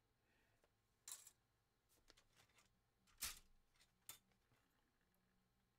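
Small tools click and knock on a workbench.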